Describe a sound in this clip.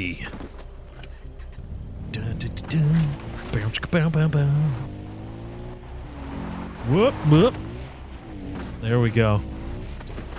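A quad bike engine hums and revs as it drives over rough ground.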